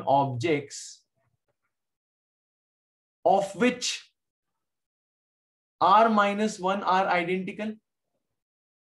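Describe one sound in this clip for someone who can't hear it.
A man speaks calmly into a microphone, explaining in short phrases.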